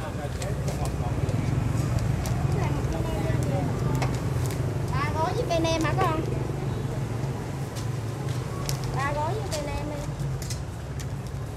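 Paper crinkles as food is wrapped.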